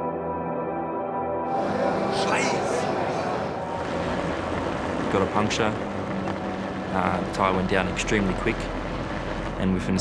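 A race car engine roars past at high speed.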